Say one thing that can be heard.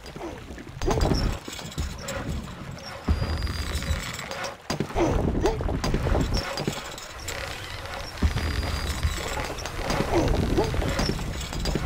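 Swords and weapons clash in a battle.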